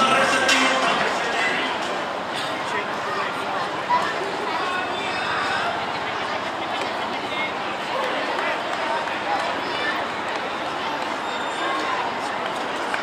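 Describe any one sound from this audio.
A crowd of spectators chatters steadily outdoors.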